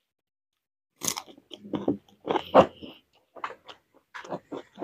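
A man chews and smacks his lips loudly, close to the microphone.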